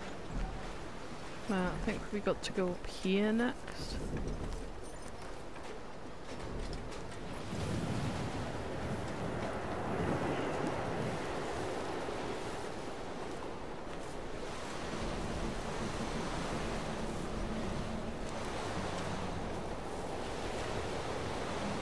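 Wind blows steadily through tall grass outdoors.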